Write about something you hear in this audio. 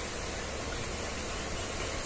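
Water bubbles softly in a fish tank.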